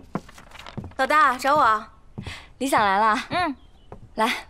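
A young woman speaks brightly and cheerfully up close.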